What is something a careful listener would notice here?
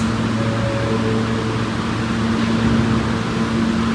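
Subway train doors slide shut.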